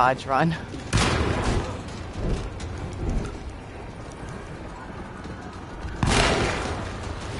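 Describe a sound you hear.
Gunshots bang loudly with a ringing echo.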